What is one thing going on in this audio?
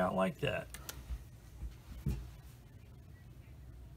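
A small plastic part clicks as it is set down on a table.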